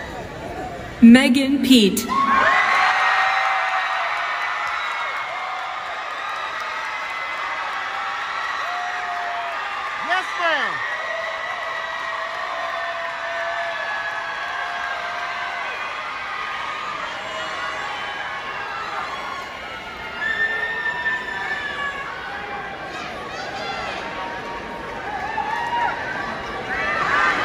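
A crowd cheers and screams loudly in a large echoing hall.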